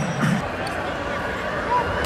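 A volleyball is spiked with a sharp smack.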